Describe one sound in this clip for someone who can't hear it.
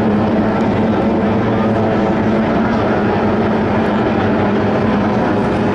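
Water sprays and hisses behind a speeding boat.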